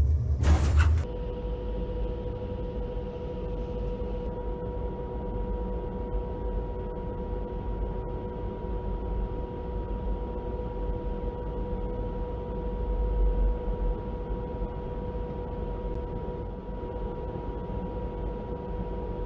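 A jet engine hums steadily at a low idle.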